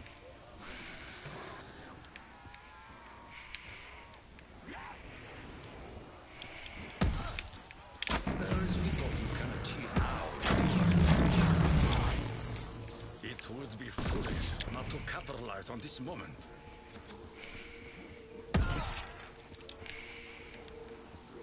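Electric bolts crackle and zap from a weapon.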